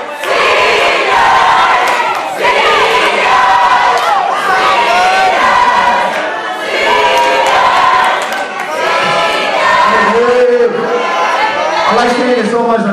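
A crowd of young people cheers and shouts with excitement.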